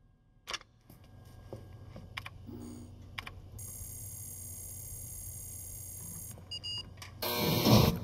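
A computer hums steadily.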